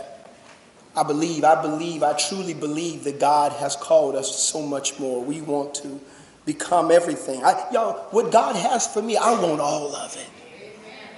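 A man speaks into a microphone with animation, in a room with some echo.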